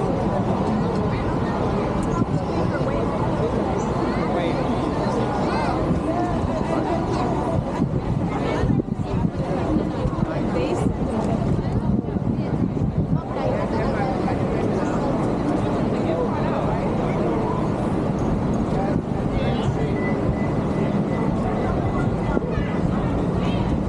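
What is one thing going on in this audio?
A busy crowd chatters outdoors on a city street.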